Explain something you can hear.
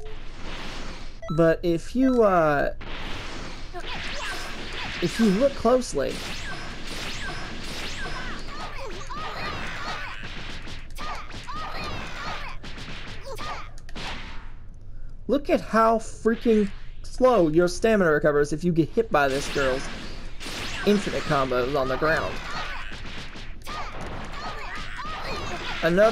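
Punches and kicks land with heavy thuds.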